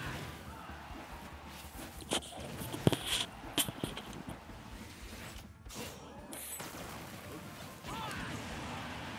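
Video game hits land with sharp whooshing blasts and impacts.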